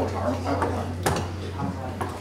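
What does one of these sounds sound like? A microphone stand clatters as it is adjusted.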